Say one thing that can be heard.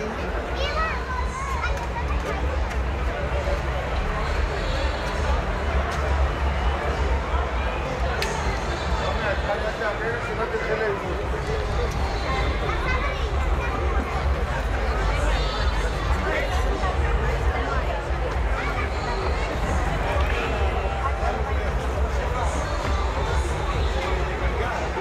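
A crowd of men and women chatters nearby outdoors.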